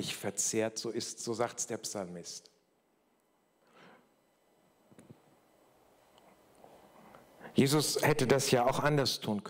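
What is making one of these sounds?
An older man speaks calmly into a microphone through loudspeakers in a large echoing hall.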